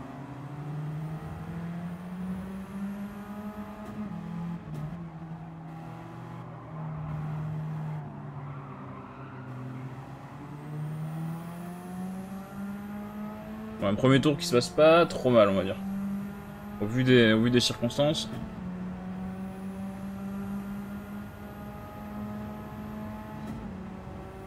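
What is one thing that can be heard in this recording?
A racing car engine drones steadily, rising and falling in pitch as it shifts gears.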